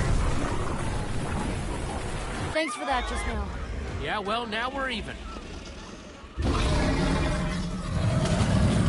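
A huge creature roars with a deep, heavy rumble.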